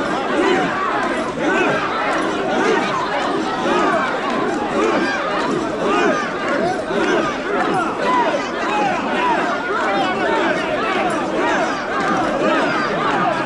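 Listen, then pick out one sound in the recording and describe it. Many voices shout and cheer all around, close by.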